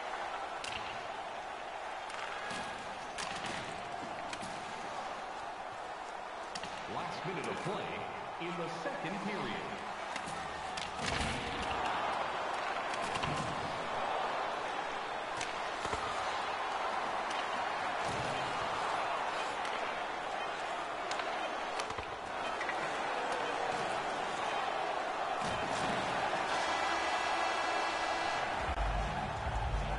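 A crowd murmurs and roars in a large arena.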